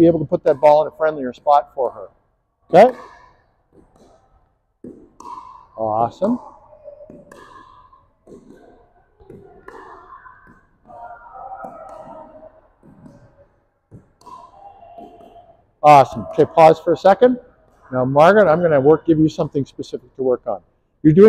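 A man talks with animation in a large echoing hall.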